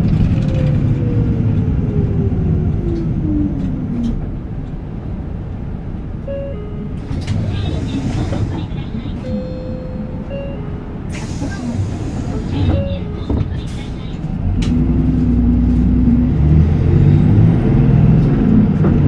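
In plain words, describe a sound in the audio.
A bus engine idles with a low, steady rumble close by.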